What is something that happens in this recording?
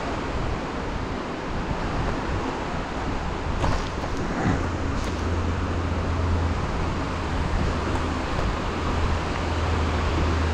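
A stream rushes steadily over rocks nearby.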